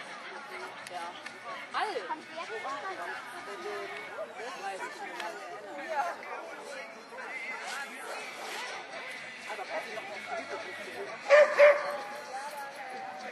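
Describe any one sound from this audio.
Adult spectators chatter outdoors in the distance.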